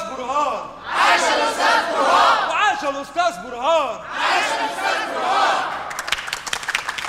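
A group of women ululate and cheer loudly.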